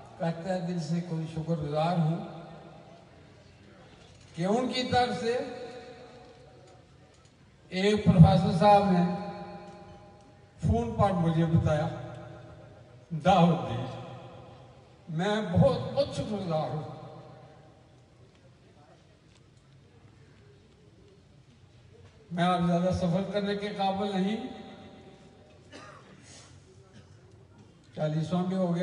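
An elderly man speaks slowly and with feeling into a microphone, heard through a loudspeaker, in short phrases with long pauses.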